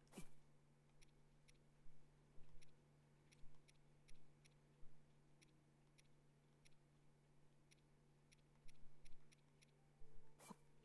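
Soft menu clicks tick as a cursor moves through items.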